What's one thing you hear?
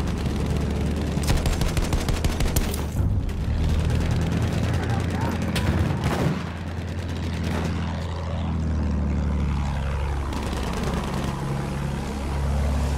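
A biplane's piston engine drones.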